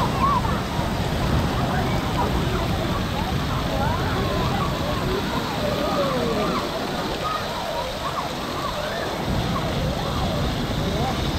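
Children shout and squeal in the distance.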